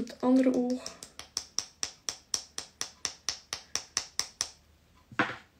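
A brush taps rapidly against a small tin.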